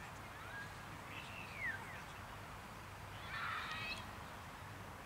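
Men call out to each other far off across an open field.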